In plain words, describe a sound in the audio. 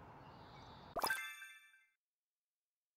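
A short chime plays, then everything goes silent.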